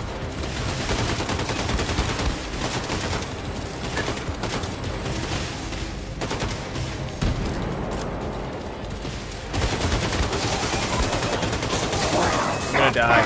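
Gunfire from a video game rattles in rapid bursts.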